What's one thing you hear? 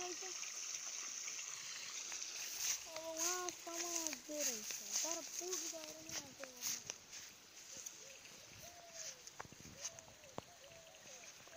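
Water trickles along a shallow channel in the ground.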